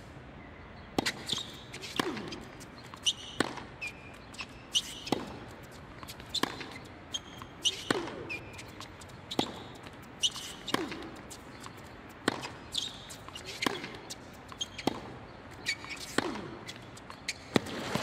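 Tennis rackets strike a ball in a quick back-and-forth rally.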